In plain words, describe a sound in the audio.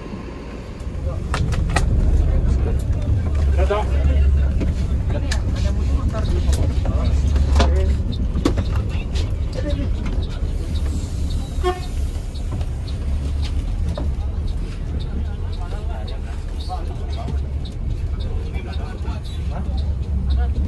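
A bus engine rumbles low and steady from inside the cab.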